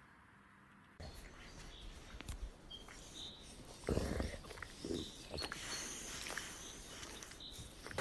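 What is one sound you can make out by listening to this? A wolf licks and gnaws at its paw.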